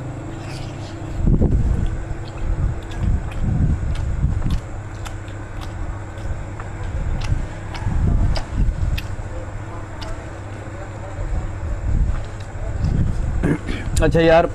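Two men chew and smack their lips while eating close by.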